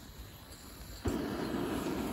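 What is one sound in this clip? A gas burner lights with a soft pop.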